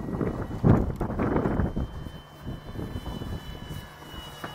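A model rocket roars loudly as it launches, then fades quickly.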